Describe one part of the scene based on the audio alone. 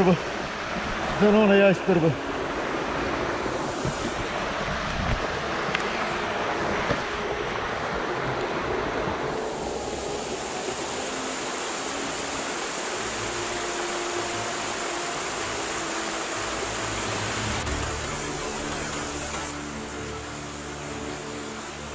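A shallow stream flows and burbles steadily.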